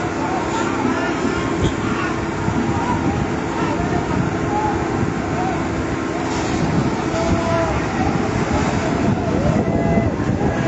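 A fire truck engine rumbles steadily.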